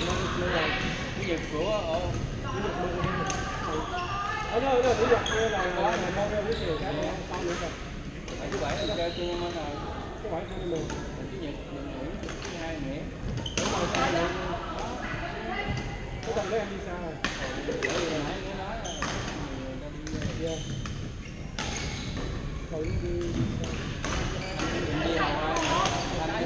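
Paddles pop sharply against plastic balls in a large echoing gym.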